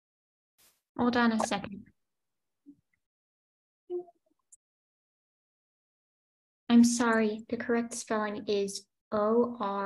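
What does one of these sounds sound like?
A young girl speaks calmly over an online call.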